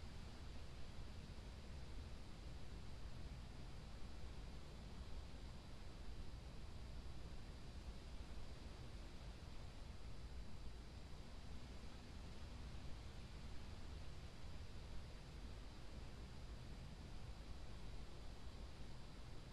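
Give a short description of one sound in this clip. A computer hums with a low, steady drone.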